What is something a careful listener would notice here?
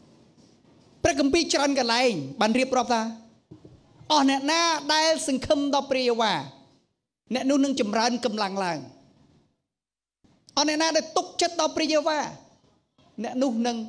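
A man preaches with passion through a microphone, his voice rising to shouts.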